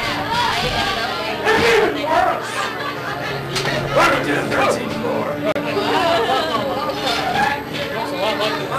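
Young women talk excitedly close by.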